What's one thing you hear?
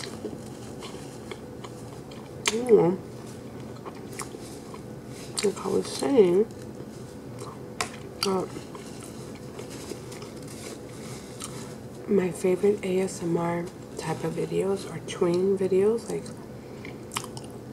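A young woman chews and smacks her lips close to a microphone.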